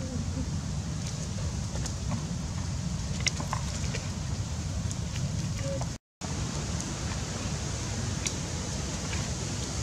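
A baby monkey squeaks in short high cries.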